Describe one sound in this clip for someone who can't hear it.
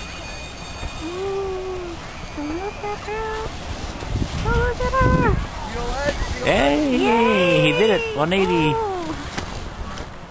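Young people shout and laugh nearby outdoors.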